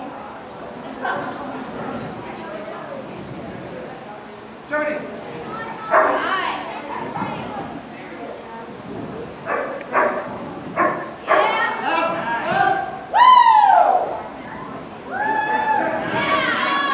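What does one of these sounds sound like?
An adult dog handler shouts commands in a large echoing hall.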